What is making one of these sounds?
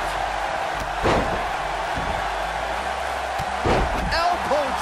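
A body slams heavily onto a wrestling mat with a thud.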